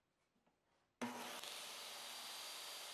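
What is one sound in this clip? A table saw motor starts with a jolt and runs with a steady loud whine.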